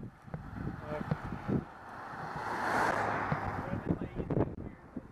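A car passes by and fades.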